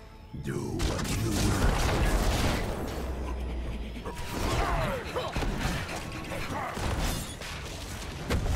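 Video game battle effects clash, zap and burst rapidly.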